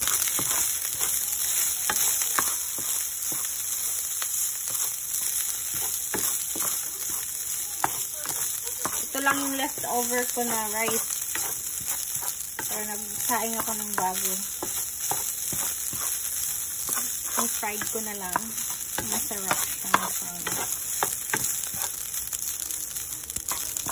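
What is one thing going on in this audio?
A wooden spatula scrapes and taps against a pan as rice is stirred.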